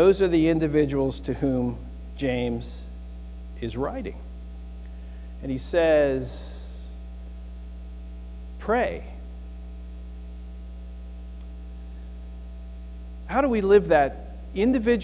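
A man speaks calmly through a microphone in an echoing room, with long pauses.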